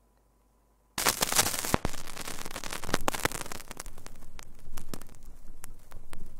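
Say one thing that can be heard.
A vinyl record crackles and pops as the needle rides the groove.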